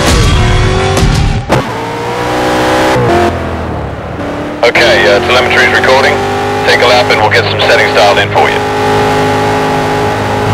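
A race car engine roars and revs at high speed.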